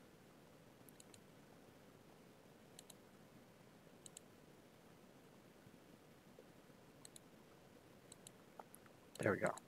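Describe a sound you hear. Mouse clicks tap softly.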